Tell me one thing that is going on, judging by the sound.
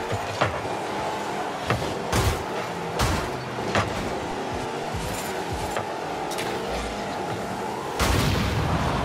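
A game car engine hums steadily while driving.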